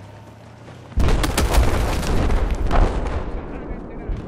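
Rifle gunfire rattles in loud, rapid bursts.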